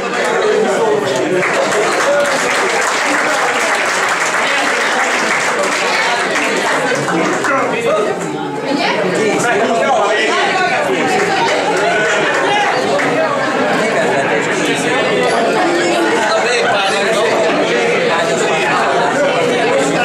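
A crowd of men and women chatters loudly in a room.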